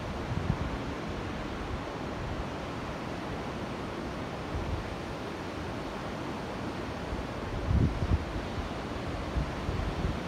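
Waves wash against the shore in the distance.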